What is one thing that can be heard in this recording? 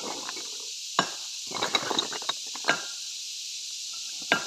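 Loose rock pieces clink and knock together as they are handled.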